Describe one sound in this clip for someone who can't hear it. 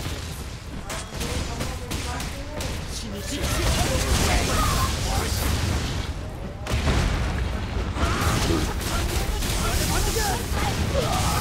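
Fiery blasts rumble and roar.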